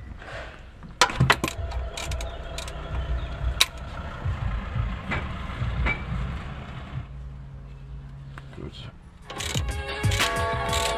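A ratchet wrench clicks as bolts are loosened under a vehicle.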